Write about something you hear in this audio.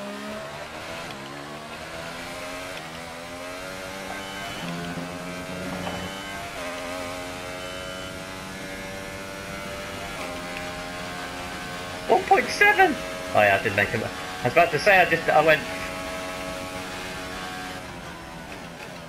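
A racing car engine roars and climbs in pitch through gear changes.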